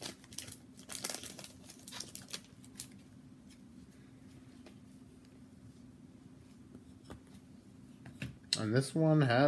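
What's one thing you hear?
Trading cards rustle and flick as they are handled.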